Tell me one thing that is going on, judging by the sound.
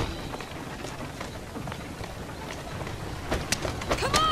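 Carriage wheels rattle over cobblestones.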